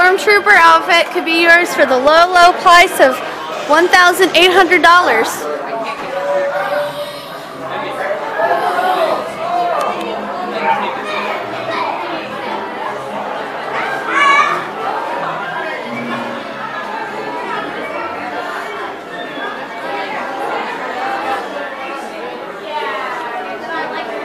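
A crowd of people murmurs and chatters in a large indoor room.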